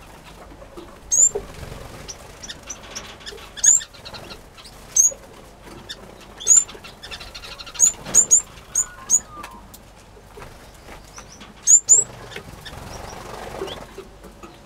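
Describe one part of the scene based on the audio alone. Small birds twitter softly in quick trills.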